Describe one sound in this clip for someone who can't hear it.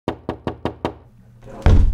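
Knuckles knock rapidly on a wooden door.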